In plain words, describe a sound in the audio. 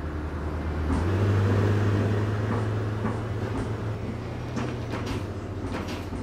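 A diesel city bus engine revs up as the bus pulls away.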